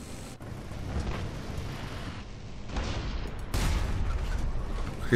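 An anti-aircraft gun fires loud bursts of shots.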